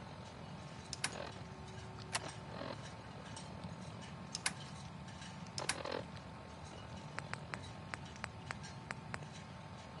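A wrist device clicks and beeps as its menu is scrolled.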